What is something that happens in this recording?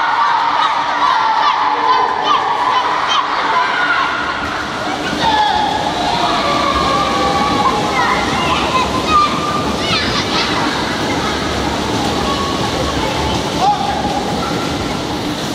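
Children shout and squeal excitedly in an echoing indoor pool.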